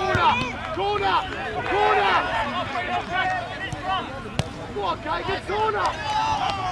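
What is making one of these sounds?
Young players shout and call out to each other across an open field outdoors.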